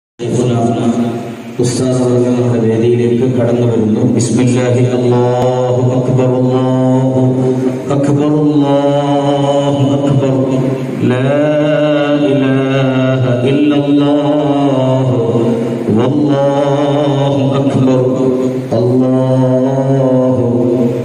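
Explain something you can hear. A large group of men chant together in unison, echoing in a large hall.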